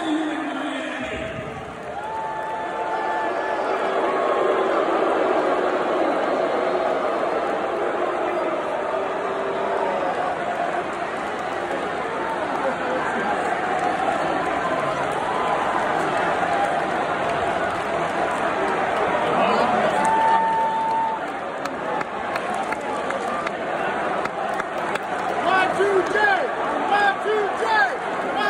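A large crowd cheers and shouts steadily in a big echoing arena.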